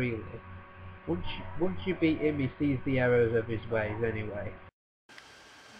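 A young man speaks quietly and close to a microphone.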